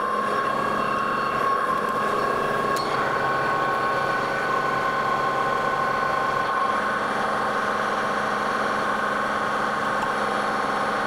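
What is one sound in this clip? A metal lathe motor whirs with a steady whine.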